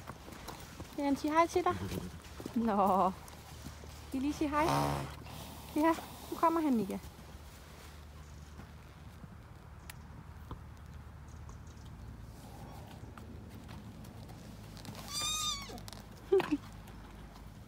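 A horse whinnies loudly nearby.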